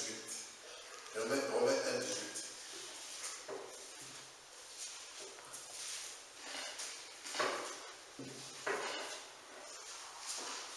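A man speaks calmly in a room with some echo.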